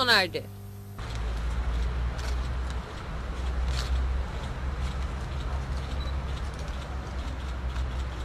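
A crowd murmurs and shuffles outdoors.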